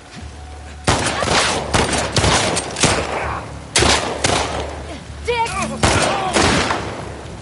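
Gunshots crack loudly in quick bursts and echo briefly.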